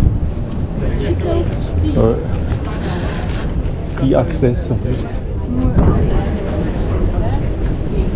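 People talk casually nearby.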